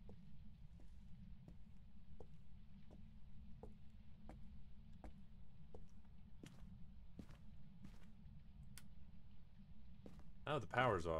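Footsteps thud slowly and evenly on a wooden floor.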